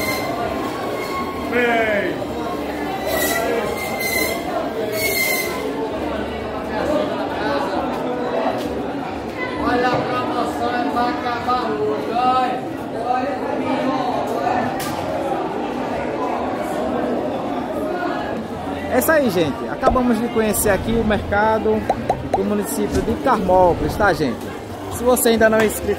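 Many men and women chatter in a busy echoing hall.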